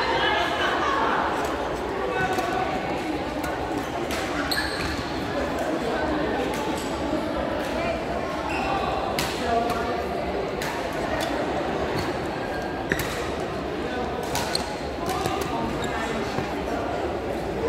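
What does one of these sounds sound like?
A busy crowd murmurs in a large echoing hall.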